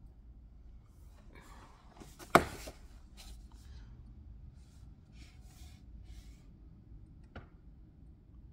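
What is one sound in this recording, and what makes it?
Sheets of paper rustle and crinkle close by.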